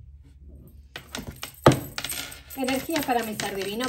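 Playing cards riffle and slap together as they are shuffled.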